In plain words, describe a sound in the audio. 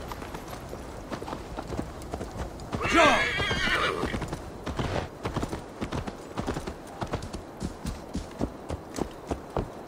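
Horse hooves clop at a quick, steady pace.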